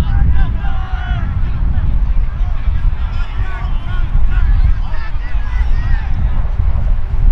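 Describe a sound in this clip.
Young men shout and cheer from nearby outdoors.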